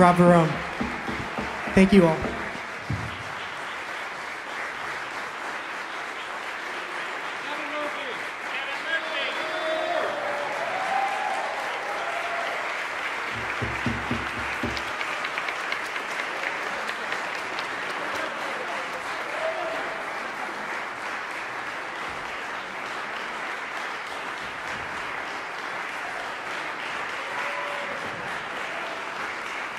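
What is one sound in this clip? Applause rings out steadily in a large echoing hall.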